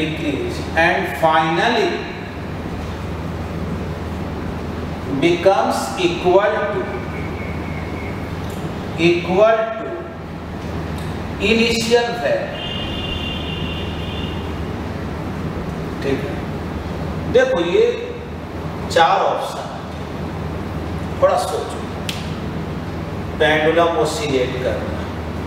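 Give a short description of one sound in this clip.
A man speaks in short bursts, explaining calmly.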